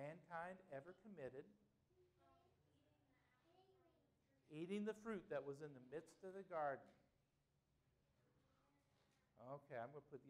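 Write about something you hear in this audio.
A man speaks loudly and with animation through a microphone in a room with some echo.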